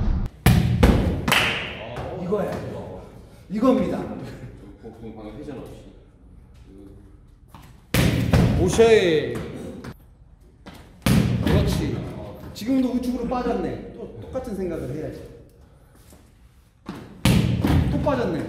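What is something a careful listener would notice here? A ball thuds sharply against a target, echoing in a large hall.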